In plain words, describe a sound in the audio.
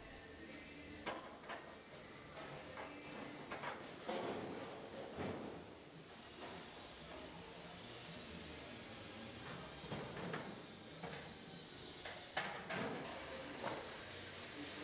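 Metal car panels knock and clank as they are handled.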